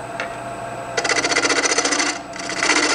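A turning chisel scrapes and chatters against spinning wood.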